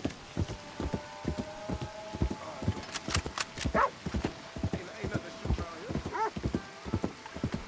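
A horse's hooves thud steadily on a dirt track.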